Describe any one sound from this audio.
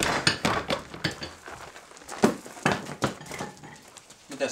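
A man strikes sharp blows on a wooden block.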